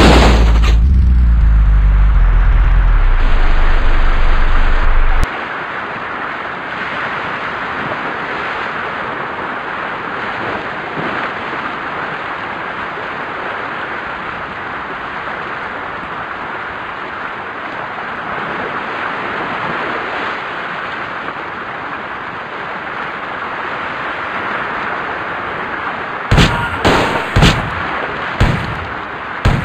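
Waves wash steadily onto a shore.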